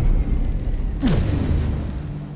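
A sharp whoosh bursts out.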